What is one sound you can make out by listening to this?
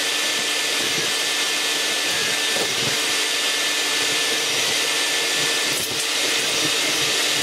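A vacuum cleaner whines steadily, sucking up dust and debris.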